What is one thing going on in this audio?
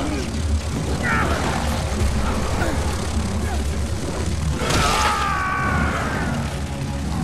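A monster snarls and shrieks loudly.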